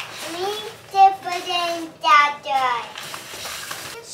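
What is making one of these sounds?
A plastic bag rustles as items are pulled out.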